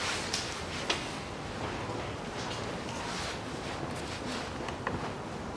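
Metal tools clink and scrape against engine parts.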